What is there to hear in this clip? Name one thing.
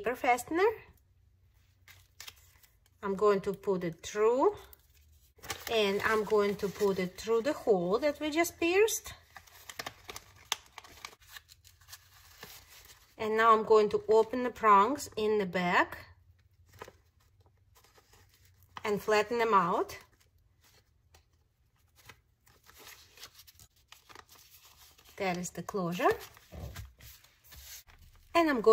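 Paper rustles and crinkles as it is folded by hand.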